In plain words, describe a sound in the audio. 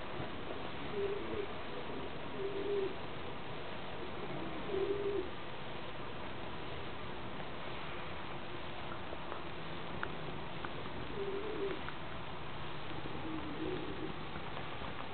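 A pigeon coos softly in short, low bursts.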